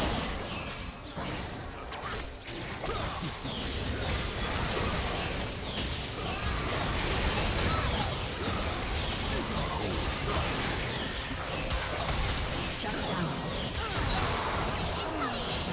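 Video game spells burst and blades clash in a busy fight.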